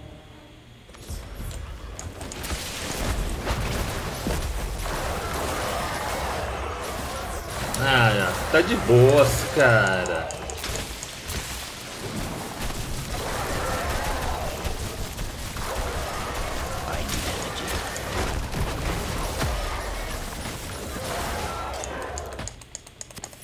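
Magic spells crackle and burst in a game battle.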